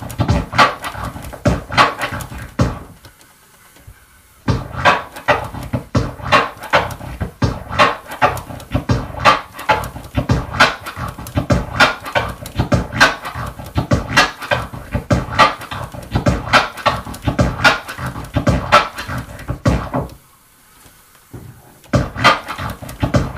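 A record is scratched back and forth by hand in quick bursts.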